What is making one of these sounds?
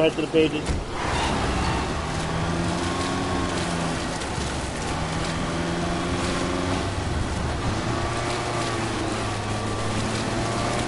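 A car engine hums and revs while driving on a rough track.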